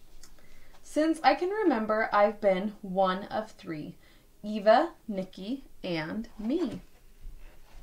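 A young woman reads aloud with expression close to the microphone.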